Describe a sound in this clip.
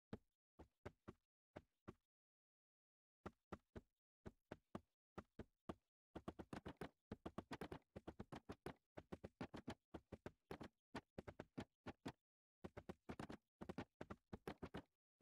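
Wooden blocks are placed with short knocking taps.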